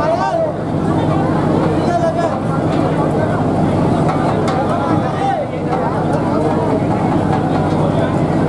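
A crowd of people chatters loudly all around.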